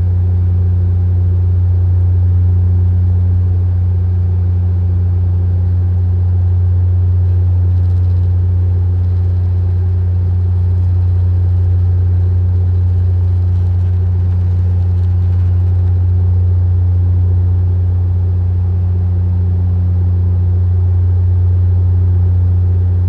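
An airplane engine drones with a steady, low hum from inside the cabin.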